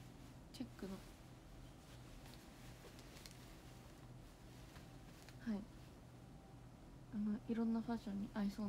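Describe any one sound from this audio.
Fabric rustles as clothing is handled.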